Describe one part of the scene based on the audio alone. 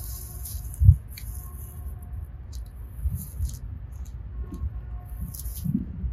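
Leaves rustle as a hand pushes through a bush.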